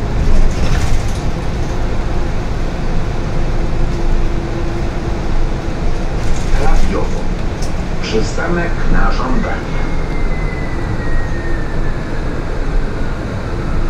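The bus rattles and creaks over the road.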